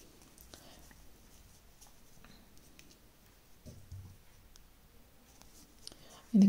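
A crochet hook clicks and scrapes softly against yarn.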